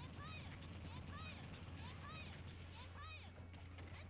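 Fighting game hits thud and crackle.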